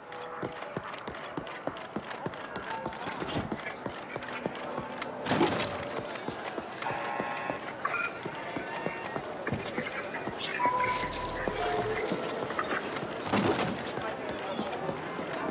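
Footsteps of several people patter across a hard floor.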